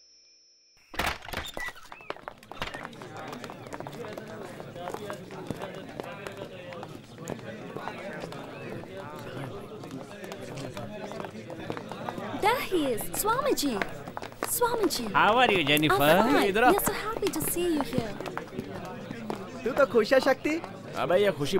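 A crowd of men shouts and clamours close by.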